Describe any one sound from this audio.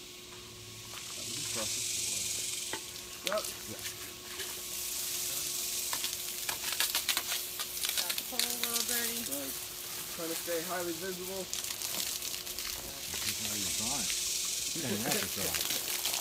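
Water sprays from a hose with a steady hissing rush.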